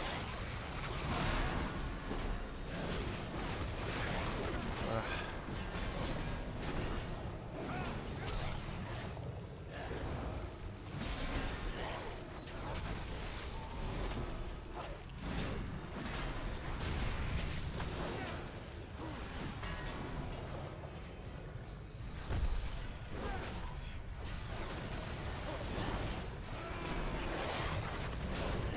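Magic blasts and weapon blows clash in a video game battle.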